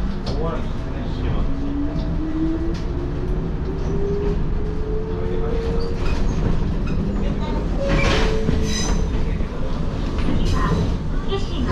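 A train rumbles steadily along the rails from inside the cab.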